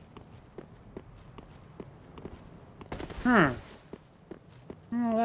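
Armoured footsteps clank steadily on stone.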